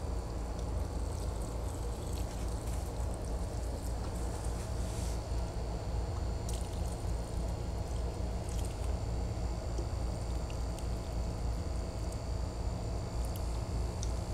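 Water pours from a watering can onto plants.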